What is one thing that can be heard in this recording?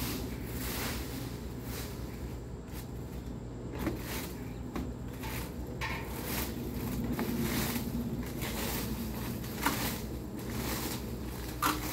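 A rake scrapes and rustles through dry leaves.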